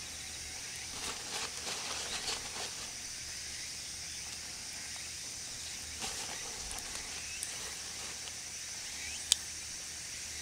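Pieces of leek drop softly into a pot of broth.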